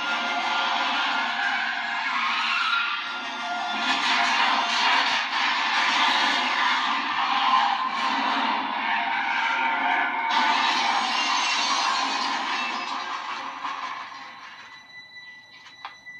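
A young man's voice speaks with alarm from a television speaker.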